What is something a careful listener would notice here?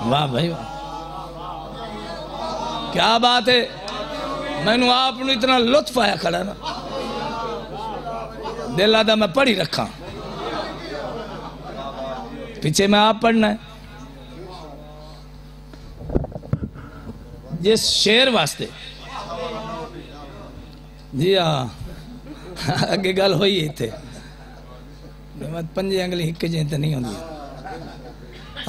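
A man recites loudly and passionately into a microphone, heard through loudspeakers in an echoing space.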